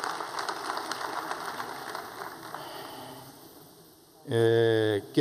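A large crowd applauds and the clapping fades away.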